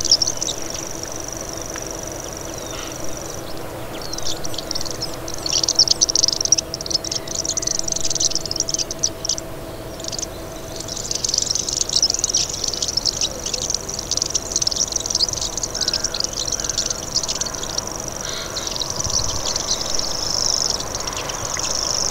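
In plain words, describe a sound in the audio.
A small bird sings a fast, high, buzzing and chattering song close by.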